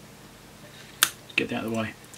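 Pliers snip through plastic with a sharp click.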